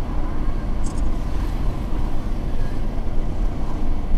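A motorbike passes close by.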